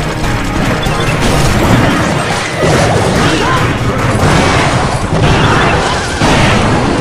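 Cartoonish battle sound effects clash and burst in a game.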